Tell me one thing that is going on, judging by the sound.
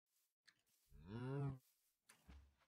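A cow moos once.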